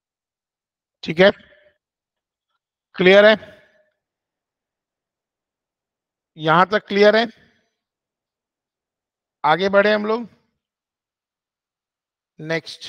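A man speaks calmly in short phrases through a microphone, as if on an online call.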